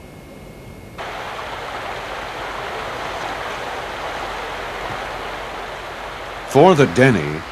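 Water rushes steadily around a man.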